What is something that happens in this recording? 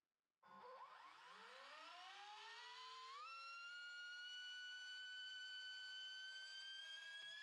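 An electric motor whines faintly and slowly rises in pitch.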